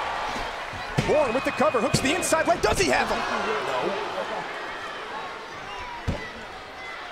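Bodies thud heavily on a wrestling ring mat.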